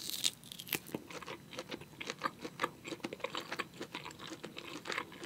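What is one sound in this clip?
A young woman chews food noisily, close to a microphone.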